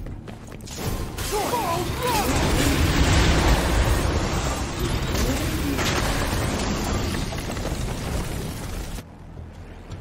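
Blades slash and clang in a loud fight.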